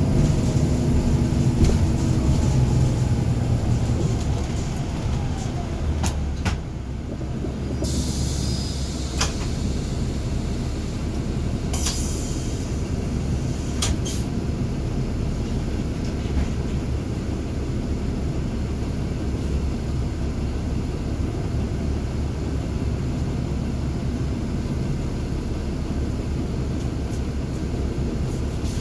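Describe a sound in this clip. The bus rattles and knocks over the road.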